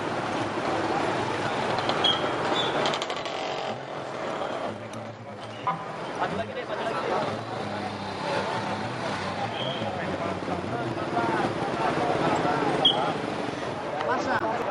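Motorcycle engines idle nearby.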